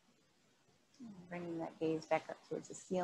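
A woman speaks calmly and softly.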